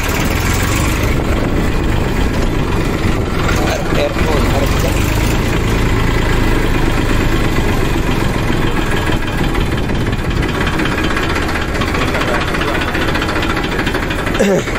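A tractor engine chugs steadily up close.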